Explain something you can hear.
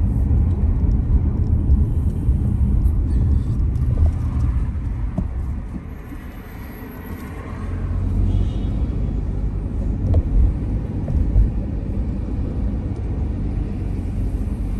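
A car engine hums steadily as it drives along a road.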